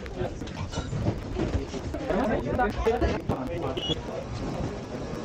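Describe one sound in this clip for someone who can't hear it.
Several people chatter nearby.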